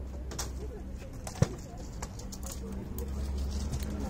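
Wooden parts of a hand loom knock and click.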